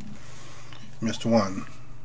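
A man speaks briefly into a microphone close by.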